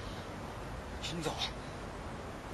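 A man speaks in a low, strained voice close by.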